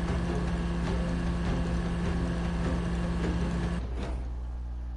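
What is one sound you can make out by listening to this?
A truck engine roars steadily.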